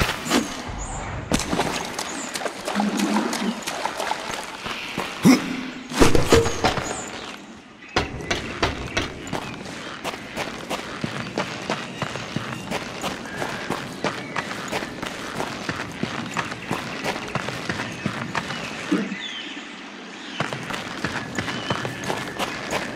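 Footsteps fall on stone.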